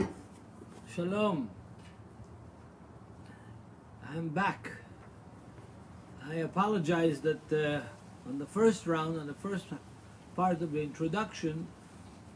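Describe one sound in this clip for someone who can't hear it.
An elderly man speaks calmly and close to the microphone, in short bursts with pauses.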